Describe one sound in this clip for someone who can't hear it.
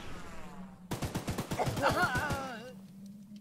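A machine gun fires rapid bursts.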